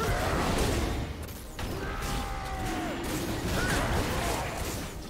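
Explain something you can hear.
Game combat effects crackle and whoosh as magical attacks hit.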